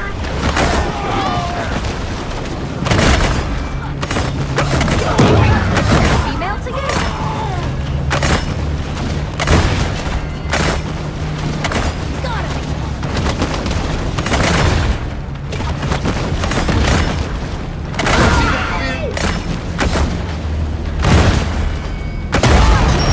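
Water splashes and churns as a shark thrashes through waves.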